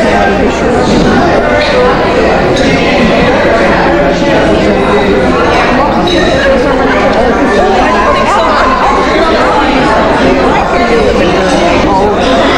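Many men and women chatter at once in a busy room.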